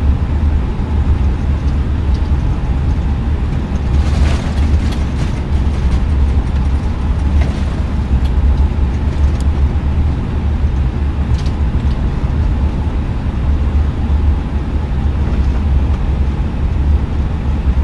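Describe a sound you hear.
Jet engines roar with a steady, deep rumble.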